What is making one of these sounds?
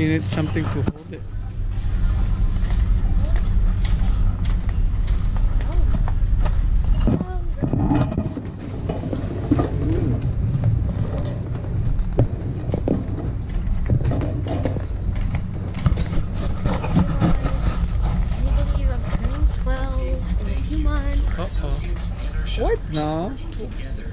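A shopping cart rattles as it rolls over a hard floor.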